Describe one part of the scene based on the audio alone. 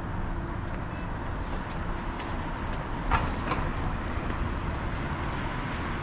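A broom sweeps the pavement nearby.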